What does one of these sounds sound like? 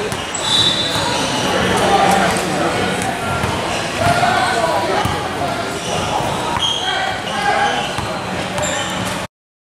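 Teenage boys chatter in an echoing gym.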